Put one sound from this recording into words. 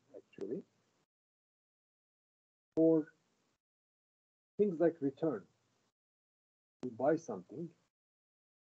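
An older man speaks calmly in short phrases over an online call.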